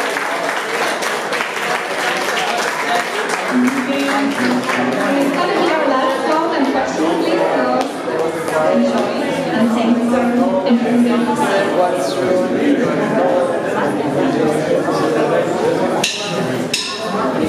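A young woman sings into a microphone through loudspeakers.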